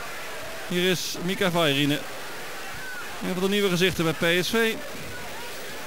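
A stadium crowd chants loudly.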